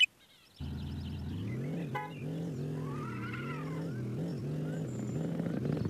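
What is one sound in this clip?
A racing car engine hums steadily and revs up and down.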